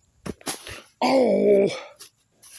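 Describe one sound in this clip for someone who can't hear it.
A young child cries out loudly up close.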